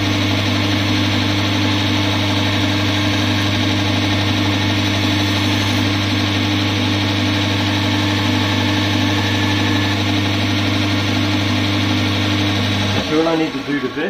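A bench grinder motor hums steadily, then stops.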